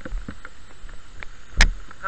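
Water splashes down over rocks.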